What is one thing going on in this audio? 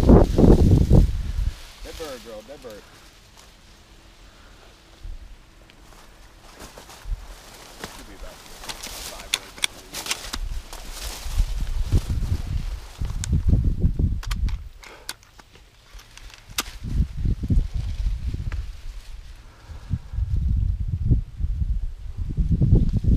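Dry corn stalks rustle and brush against someone walking through them.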